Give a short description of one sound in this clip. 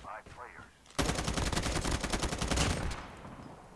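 A mounted gun fires in a fast burst.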